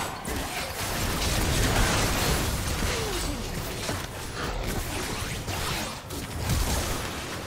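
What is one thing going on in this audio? Bursts of game explosions boom repeatedly.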